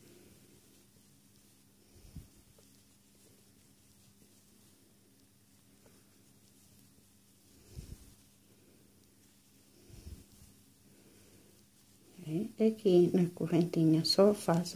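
Knitting needles tick and scrape softly against yarn.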